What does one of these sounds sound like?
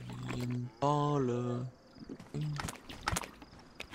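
Footsteps crunch through dry grass.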